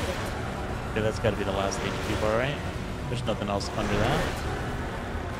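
A huge monster growls and roars.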